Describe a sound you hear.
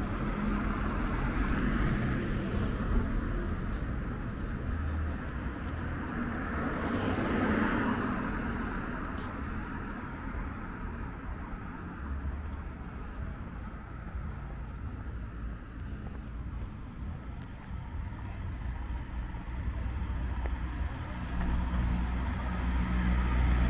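Cars drive past on a nearby road, their sound swelling and fading.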